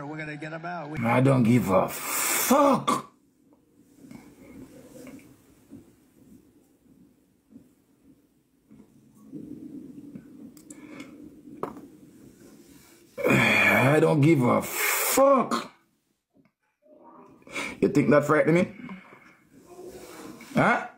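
A man speaks with animation close by, pausing often.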